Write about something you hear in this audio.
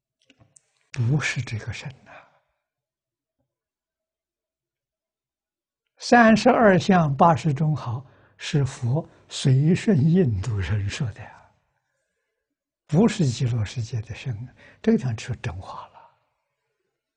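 An elderly man speaks calmly, with pauses, close to a microphone.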